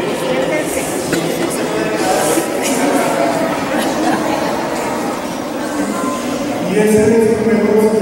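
A cello plays deep bowed notes.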